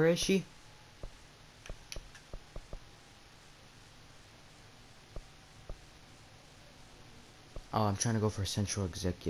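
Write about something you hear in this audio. Soft game menu clicks tick one after another.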